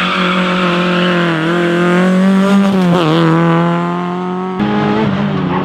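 A car engine revs loudly.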